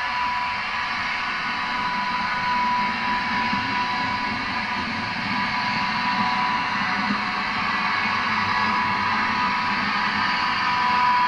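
A model train rumbles over the track as it pulls closer.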